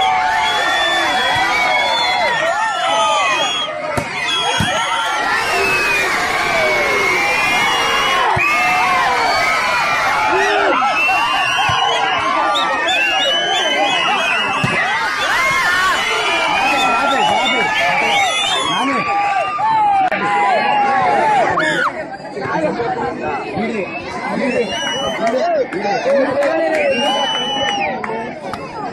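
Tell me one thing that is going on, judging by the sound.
A large crowd of schoolboys shouts and cheers outdoors.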